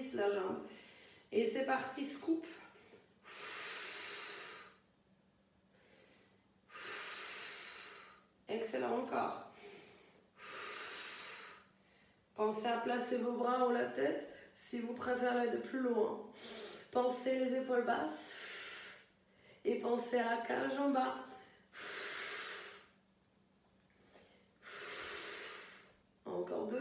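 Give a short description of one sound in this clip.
A woman speaks calmly and a little breathlessly close by.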